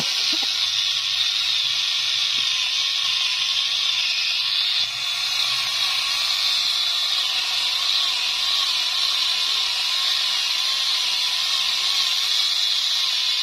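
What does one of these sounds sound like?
A small electric chainsaw whines steadily as it cuts into a tree trunk.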